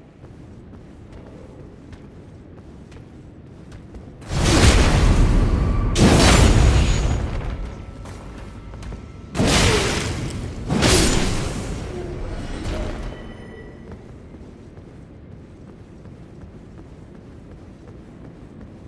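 A low eerie hum fills a large echoing hall.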